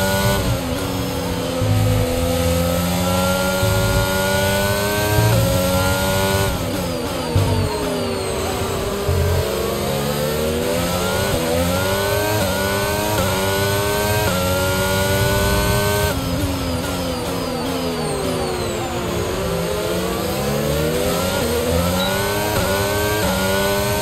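A racing car engine screams, rising through the gears and dropping as it brakes.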